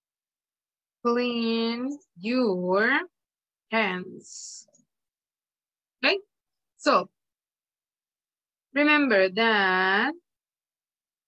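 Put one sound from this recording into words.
A woman speaks slowly and clearly over an online call, with pauses.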